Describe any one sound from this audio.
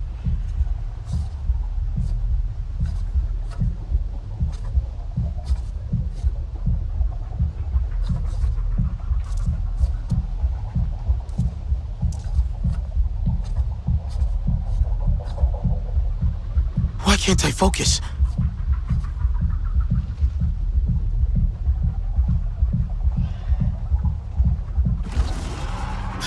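Heavy footsteps thud steadily on soft ground.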